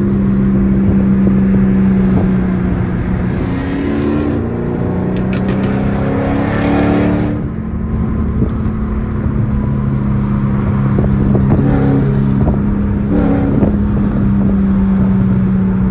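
A car engine drones loudly from inside the car, rising and falling in pitch.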